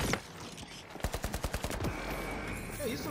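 Coins clatter and burst apart.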